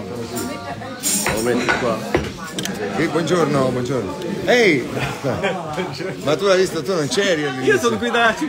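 A middle-aged man talks and laughs close by.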